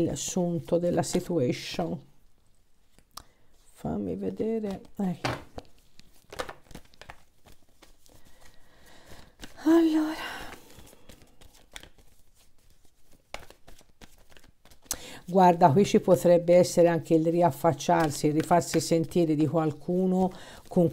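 Playing cards riffle and flick softly in a hand.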